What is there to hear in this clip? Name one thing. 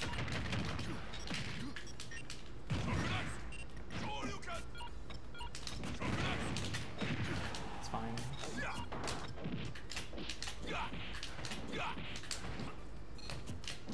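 Video game fighting sounds whoosh, hit and explode.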